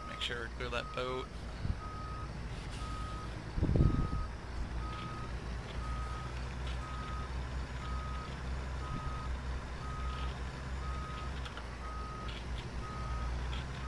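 A truck engine rumbles low and steady as the truck turns slowly.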